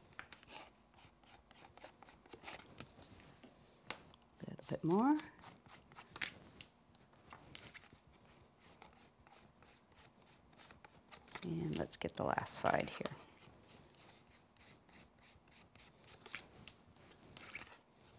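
Paper rustles and scrapes as it is handled.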